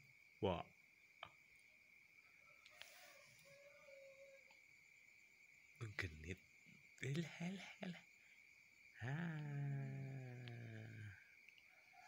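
A newborn baby coos and whimpers softly up close.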